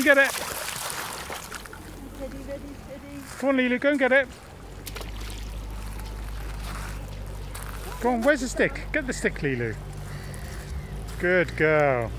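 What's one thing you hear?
A dog splashes as it swims through shallow water.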